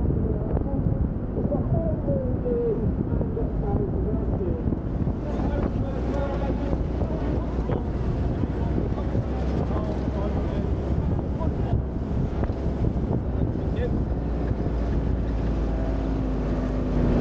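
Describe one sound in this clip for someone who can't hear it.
An open off-road vehicle's engine rumbles as it drives over rough ground.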